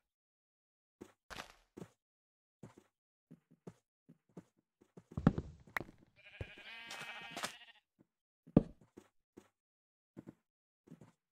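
Wooden blocks are set down with short, soft knocks.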